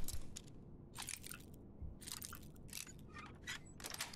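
A lock pick scrapes and clicks in a lock.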